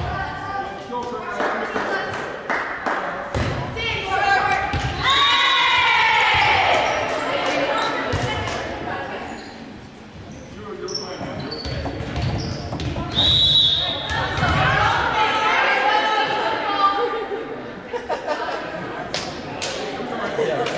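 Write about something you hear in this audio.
Young women shout and call out to one another in a large echoing gym.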